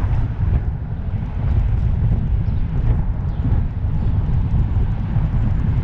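Wind buffets loudly against a microphone outdoors.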